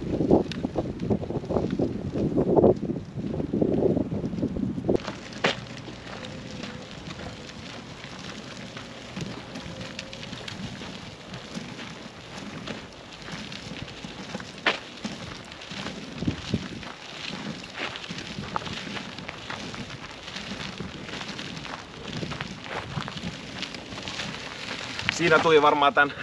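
Wheelchair tyres crunch over a gravel path.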